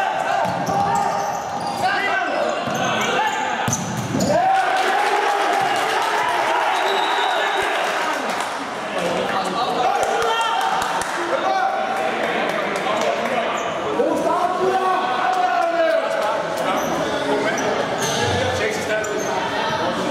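Young men shout to each other across an echoing court.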